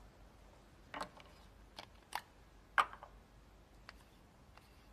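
Small objects click and tap as they are handled.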